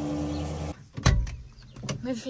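A tractor cab door slams shut with a thud.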